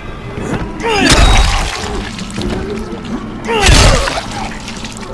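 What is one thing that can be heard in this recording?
An axe strikes a body with heavy, wet thuds.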